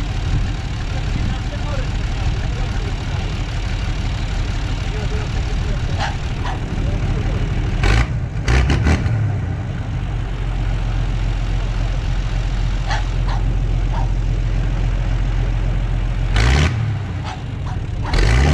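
A tractor engine idles with a steady low rumble.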